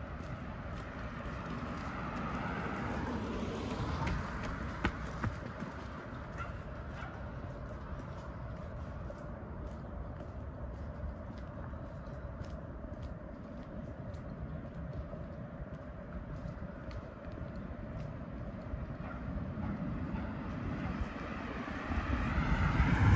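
A car passes by on the road.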